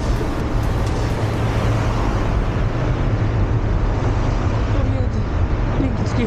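Wind rushes steadily past a moving vehicle.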